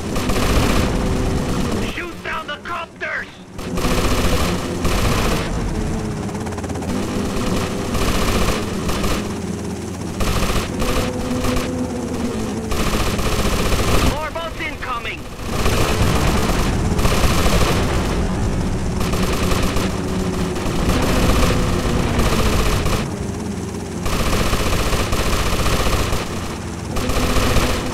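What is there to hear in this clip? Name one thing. A helicopter's rotor thumps as it flies.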